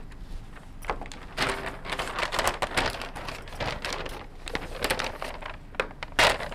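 Paper cards rustle as they are pulled off a board.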